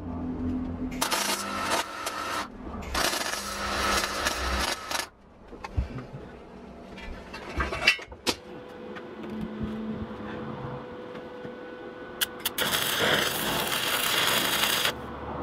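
An arc welder crackles and hisses in short bursts.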